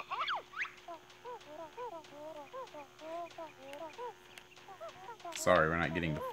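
A cartoonish character babbles in quick, chirpy gibberish.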